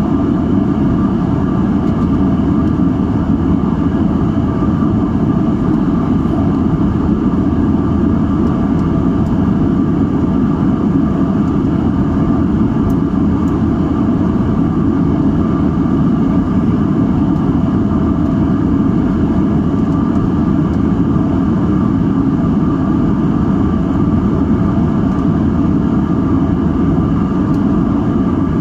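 Jet engines roar steadily inside an airliner cabin in flight.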